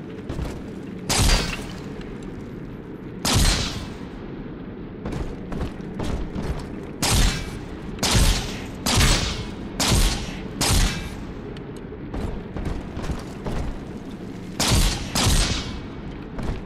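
A gun fires loud, echoing shots in short bursts.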